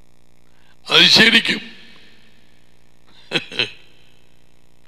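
An older man laughs.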